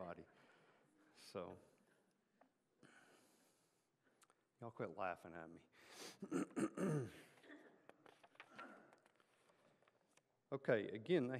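A middle-aged man speaks calmly through a microphone in a large room.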